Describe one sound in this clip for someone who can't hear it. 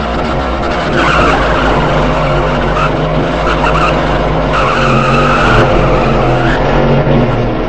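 Tyres screech as a stock car spins.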